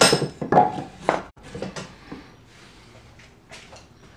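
A piece of wood knocks on a wooden bench.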